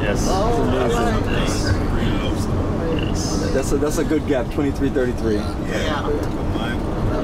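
A man talks cheerfully and close by.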